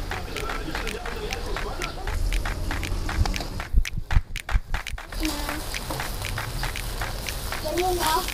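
Food sizzles and crackles on a grill over hot charcoal.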